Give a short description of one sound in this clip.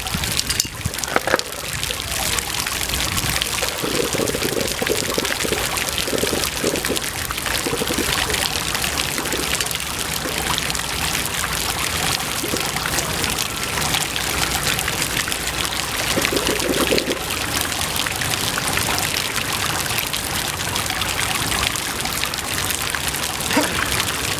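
Fountain jets splash steadily into shallow water outdoors.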